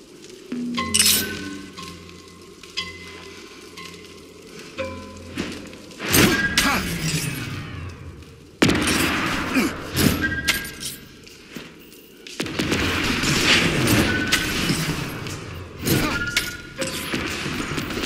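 Energy blasts crackle and zap.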